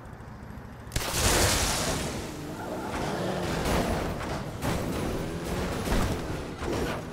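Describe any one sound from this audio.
Explosions burst with loud bangs.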